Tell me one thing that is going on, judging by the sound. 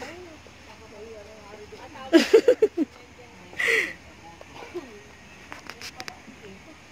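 Young women chat and laugh nearby outdoors.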